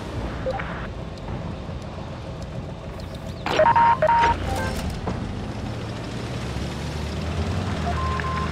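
Tank treads clank and grind over a dirt track.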